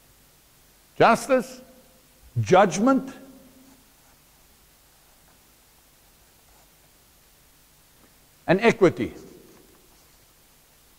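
A middle-aged man speaks loudly in short bursts in an echoing hall.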